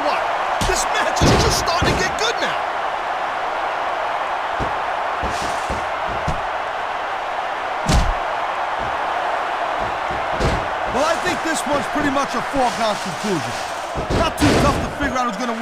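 Heavy bodies thud against a wrestling ring mat.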